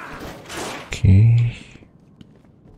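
A metal grate breaks free with a heavy clank.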